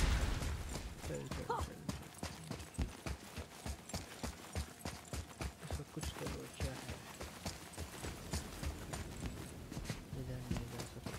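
Heavy footsteps thud quickly on stone.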